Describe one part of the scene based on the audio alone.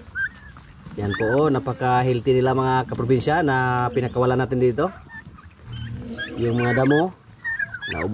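A turkey gobbles loudly.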